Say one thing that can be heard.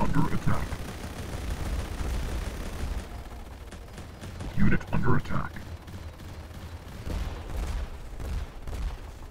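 Laser guns fire in rapid bursts.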